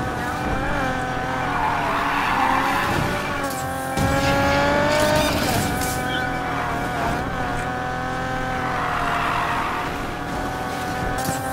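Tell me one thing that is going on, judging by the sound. A car engine roars at high revs, its pitch rising and falling.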